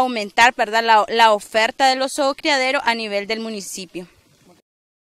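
A young woman speaks steadily into microphones close by.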